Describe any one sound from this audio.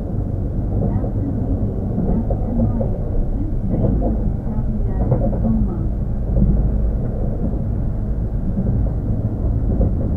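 An electric train hums steadily while standing nearby.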